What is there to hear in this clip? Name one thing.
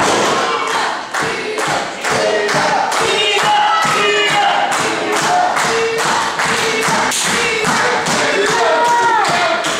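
A crowd claps in a steady rhythm in an echoing hall.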